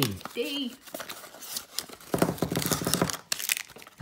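Cardboard rustles as a small box is opened.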